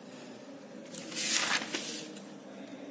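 A sheet of paper rustles as it is moved.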